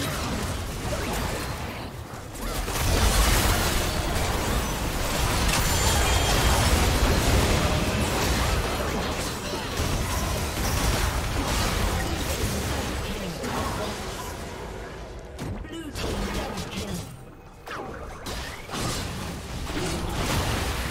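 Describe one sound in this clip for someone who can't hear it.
Fantasy game spells whoosh and explode during a battle.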